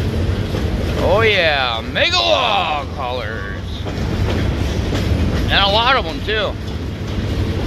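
Train wheels squeal sharply on the rails.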